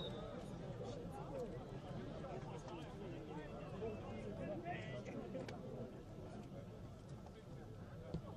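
Many voices chatter and call out at a distance outdoors.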